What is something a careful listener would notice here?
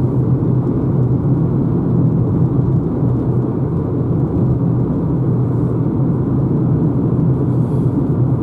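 Tyres roll steadily over the road with a low rumble inside a moving car.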